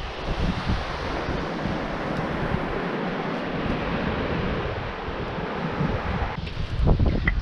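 Waves wash gently onto a pebbly shore.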